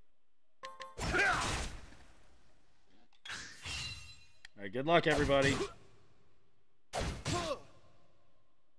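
A sword strikes with a heavy impact.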